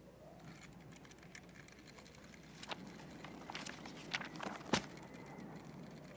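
Book pages flutter in a breeze.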